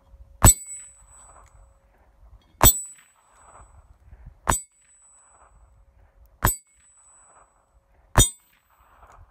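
Bullets strike a hanging target.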